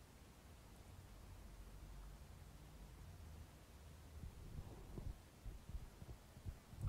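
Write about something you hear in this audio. A man snores softly nearby.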